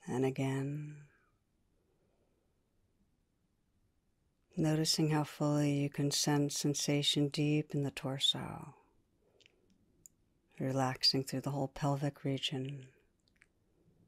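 A woman speaks calmly and softly into a microphone, close by.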